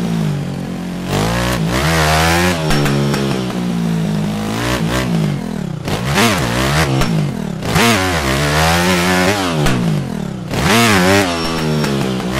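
A motocross engine revs up and down sharply as gears shift.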